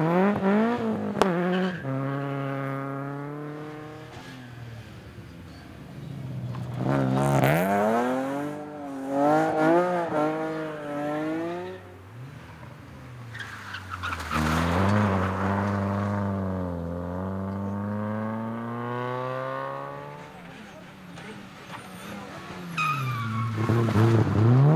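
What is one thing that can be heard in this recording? A rally car engine revs hard and roars past, shifting gears.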